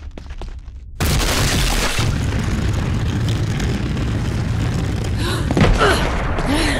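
A low rumbling roar fills the space.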